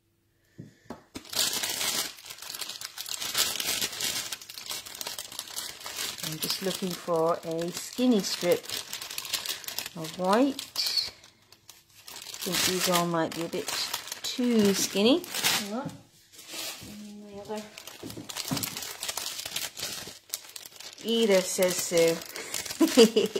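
Plastic sheets rustle and crinkle.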